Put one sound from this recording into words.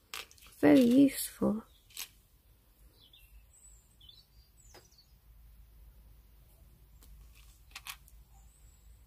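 Small metal jewellery pieces clink softly as they are handled.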